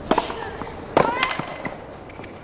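A young woman grunts loudly as she hits the ball.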